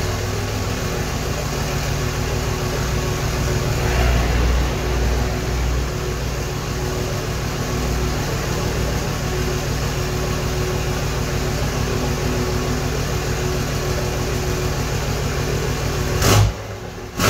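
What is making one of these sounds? A diesel truck engine idles with a deep, steady rumble through its exhaust.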